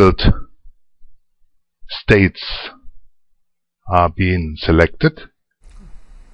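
A middle-aged man speaks calmly and with emphasis, close by.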